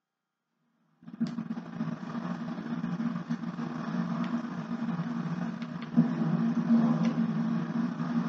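A television plays a low, steady droning soundtrack.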